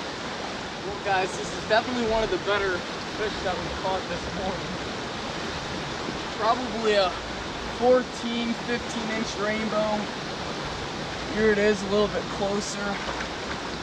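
A young man talks with excitement close by.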